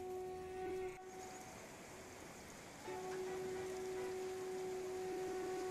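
A shallow river rushes and splashes over rocks.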